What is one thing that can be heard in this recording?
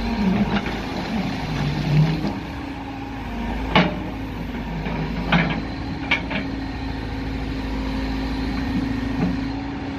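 A diesel backhoe loader engine runs at a steady idle.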